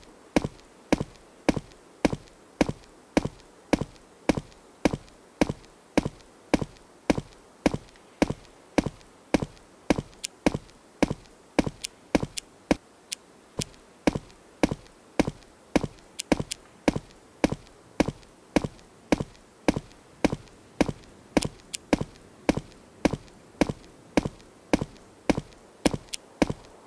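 Footsteps fall at a steady walking pace.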